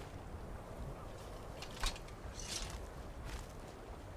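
A heavy weapon swings and strikes with a thud.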